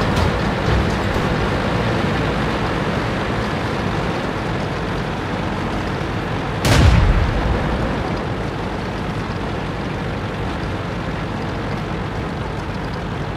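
Tank tracks clank and rattle over the ground.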